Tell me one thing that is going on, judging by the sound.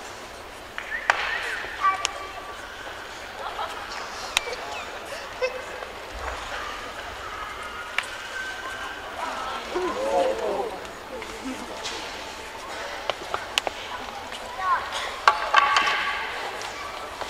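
Fighters shout sharply as they strike.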